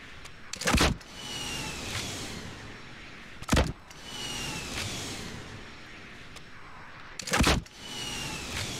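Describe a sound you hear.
A rocket launcher fires with a loud booming blast.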